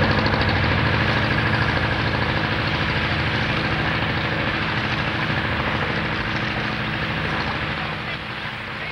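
A small boat's motor hums steadily.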